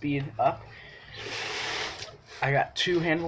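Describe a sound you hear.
Cardboard flaps rustle as a box is opened.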